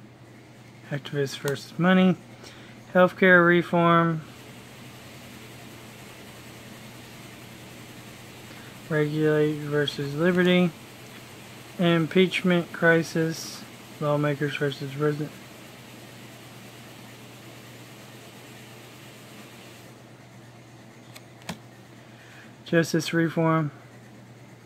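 Stiff playing cards rub and slide softly as hands move them.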